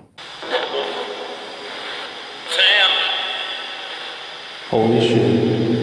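A handheld radio crackles with static and snatches of broadcast voices as it scans between stations.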